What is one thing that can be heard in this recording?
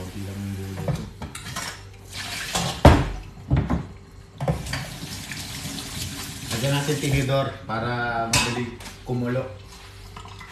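Dishes and a pot clatter in a metal sink.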